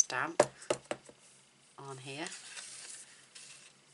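Paper slides across a table.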